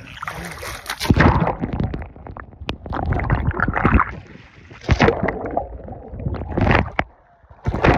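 Bubbles gurgle and rumble underwater.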